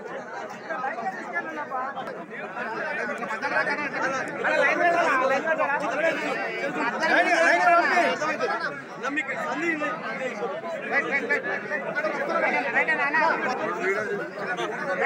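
A man speaks loudly with animation close to a microphone.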